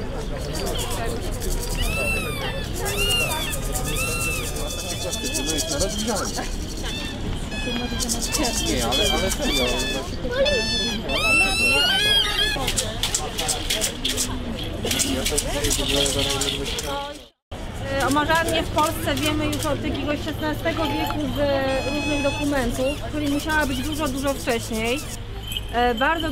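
Children and adults talk in a crowd outdoors.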